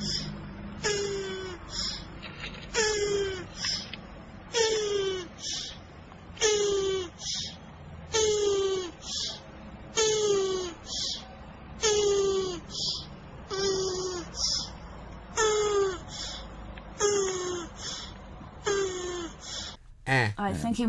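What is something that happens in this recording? A tortoise lets out short, squeaky groans again and again in a steady rhythm.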